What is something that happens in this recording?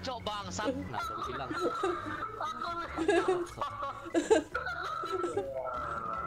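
A young woman laughs into a headset microphone.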